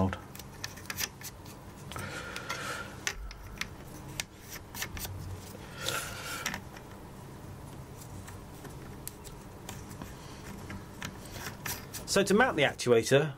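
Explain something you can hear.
Plastic fittings click and tap under fingers.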